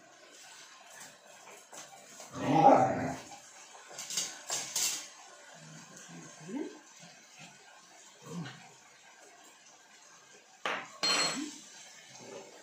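A spoon scrapes and clinks in a frying pan.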